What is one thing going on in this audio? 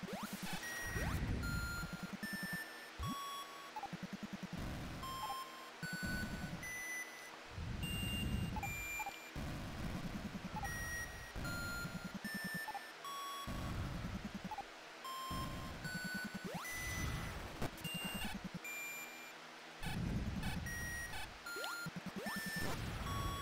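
Short electronic blips and zaps from a video game ring out now and then.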